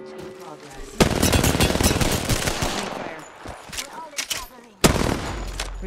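A rifle fires in rapid bursts of shots close by.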